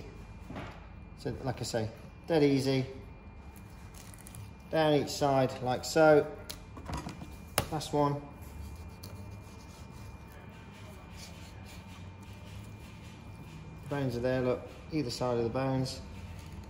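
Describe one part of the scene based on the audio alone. A knife slices through soft fish on a cutting board.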